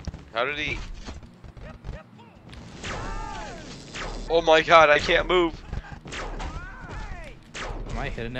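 Cartoon blasters fire in quick zapping bursts.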